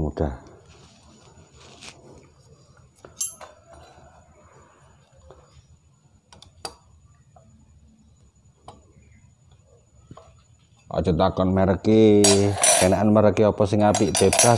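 Metal tools click and tap against an engine.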